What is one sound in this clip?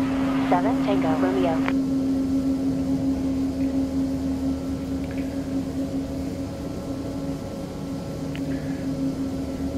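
An aircraft engine hums steadily at idle.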